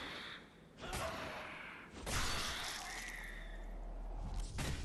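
A heavy blade slashes and strikes with loud impacts.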